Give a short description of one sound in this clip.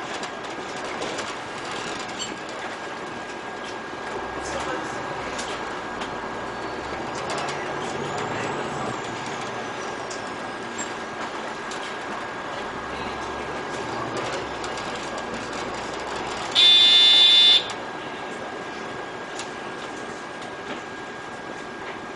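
A diesel city bus drives along a road, heard from inside.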